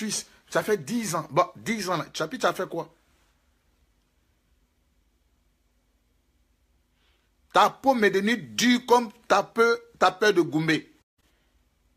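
A man speaks close to a microphone, with animation, pausing between phrases.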